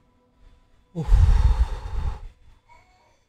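A young man speaks briefly near a microphone.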